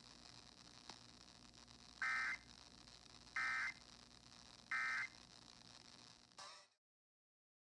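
A radio receiver hisses faintly with static.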